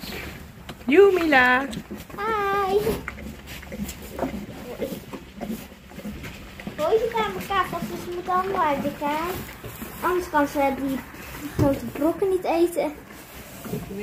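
A young child talks close by with animation.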